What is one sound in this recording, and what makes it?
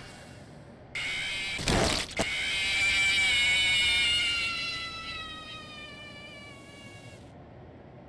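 A monster lets out a long, falling screech.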